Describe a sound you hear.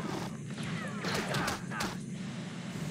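Blasters fire in rapid bursts in a video game.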